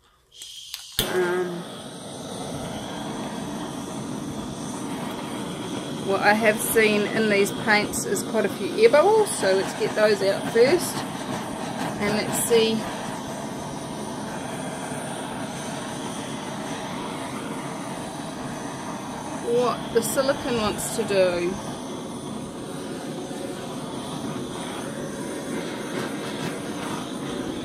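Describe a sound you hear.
A heat gun blows with a steady whooshing roar.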